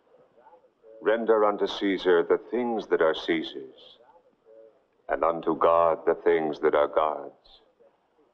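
A man speaks slowly and solemnly, close by.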